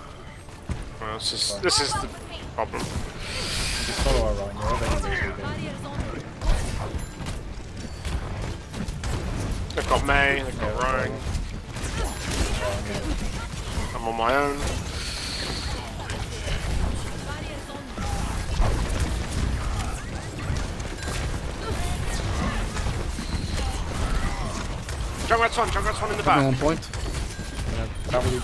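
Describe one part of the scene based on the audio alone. A heavy gun fires rapid bursts of shots.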